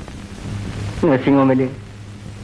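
A man talks insistently, close by.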